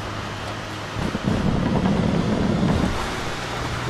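Tyres rumble over a wooden bridge.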